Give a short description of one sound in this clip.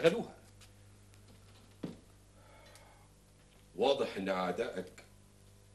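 An elderly man speaks sternly and close by.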